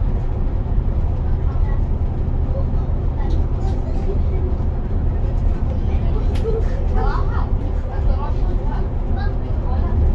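A car engine hums steadily with road rumble from inside a moving vehicle.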